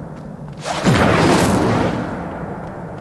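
A fiery explosion bursts with a loud roar.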